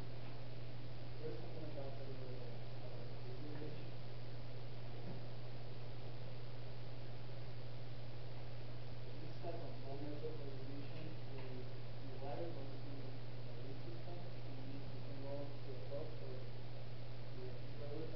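A man speaks calmly to a group, a little way off.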